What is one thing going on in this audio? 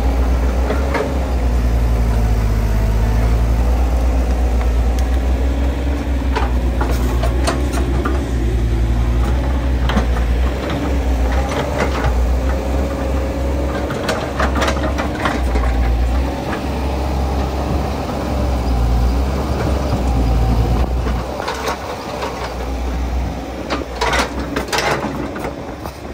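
Dirt and clods thud and scrape as an excavator bucket digs.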